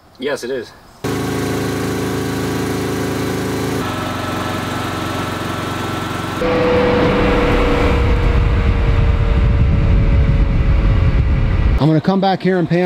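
A jet engine roars loudly with a high whine.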